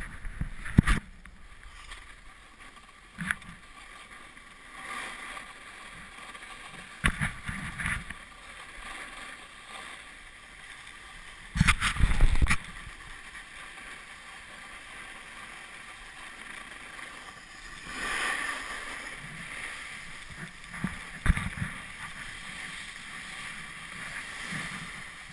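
A snowboard scrapes and hisses over packed snow.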